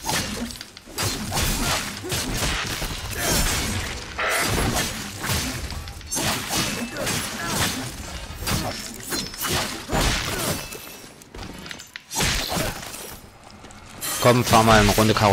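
Swords slash and clang in quick bursts.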